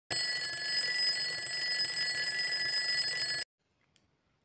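An alarm clock bell rings loudly and steadily.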